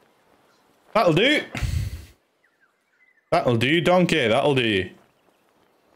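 A young man speaks loudly and with animation into a microphone.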